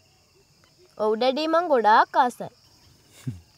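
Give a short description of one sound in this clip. A young girl speaks nearby.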